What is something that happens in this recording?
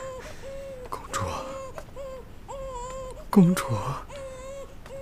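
A young man speaks up in a surprised, questioning voice.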